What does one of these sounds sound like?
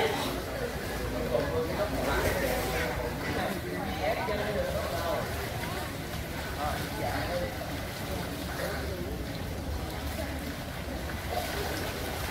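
Water splashes and laps as children swim.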